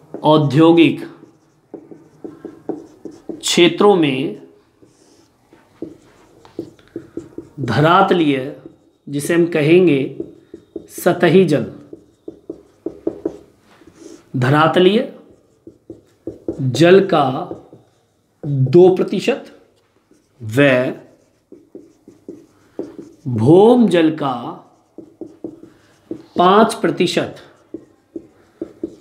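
A young man speaks clearly and steadily, as if teaching, in short bursts with pauses.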